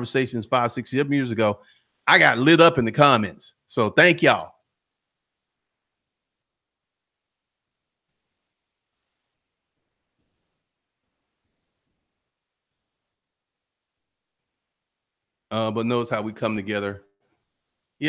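A man speaks calmly and close into a microphone, pausing between phrases.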